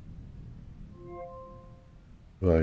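A soft electronic chime sounds once.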